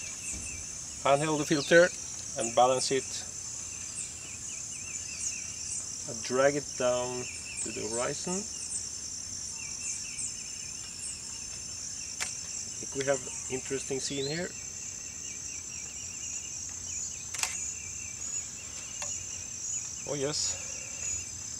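A middle-aged man speaks calmly and close by, in short bursts.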